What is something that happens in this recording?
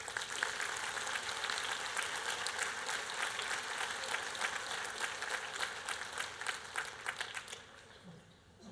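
An audience applauds in a large hall, then the clapping dies away.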